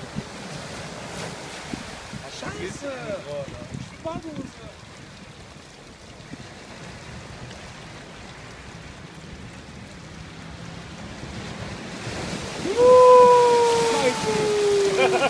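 Waves wash and splash over rocks.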